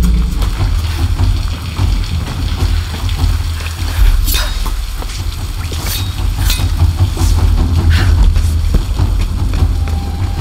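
Footsteps crunch and thud on the ground.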